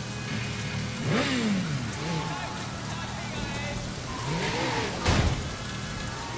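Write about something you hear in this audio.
A motorcycle engine revs up sharply a few times.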